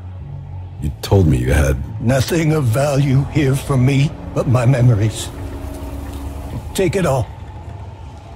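A man speaks calmly and gravely.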